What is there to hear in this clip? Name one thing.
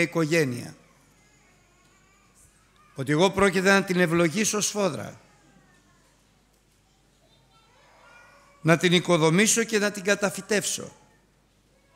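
An older man speaks slowly and with emphasis through a microphone, with pauses between phrases.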